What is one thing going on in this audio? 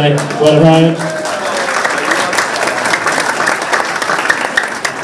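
A man claps his hands.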